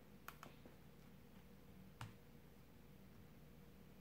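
A puzzle cube is set down on a padded mat with a light tap.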